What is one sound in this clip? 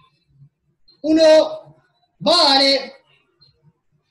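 A man calls out loudly over an online call.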